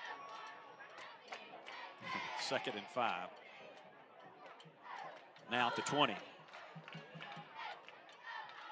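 Spectators shout and cheer from the sidelines.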